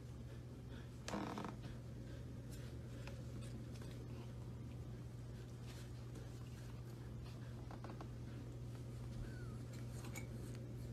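Small paws scuffle and scratch on a wooden floor.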